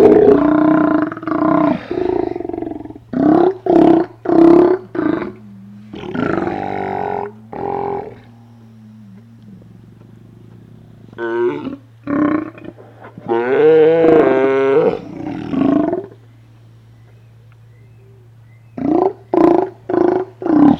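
Sea lions roar and growl loudly close by.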